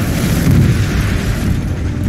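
Jet thrusters roar loudly.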